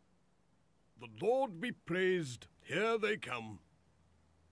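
An elderly man speaks cheerfully.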